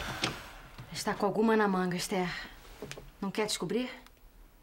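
A young woman speaks firmly, close by.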